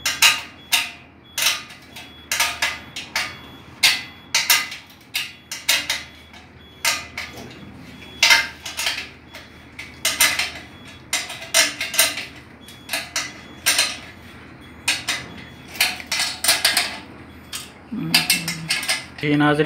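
Metal parts clink and tap together as they are fitted by hand.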